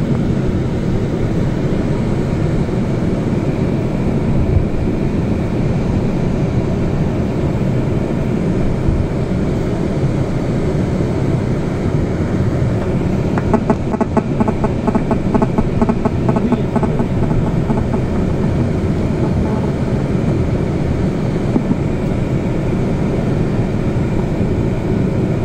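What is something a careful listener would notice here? A vehicle engine hums steadily, heard from inside, with road rumble beneath.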